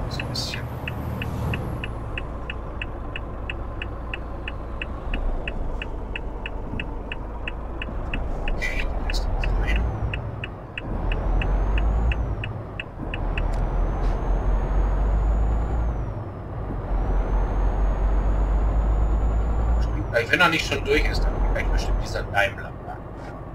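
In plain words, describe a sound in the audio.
A truck engine rumbles steadily as the truck drives along a road.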